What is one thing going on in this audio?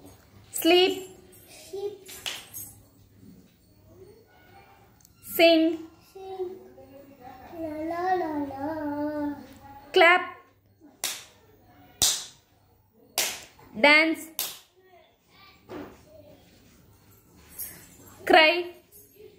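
A little girl calls out in short, high bursts close by.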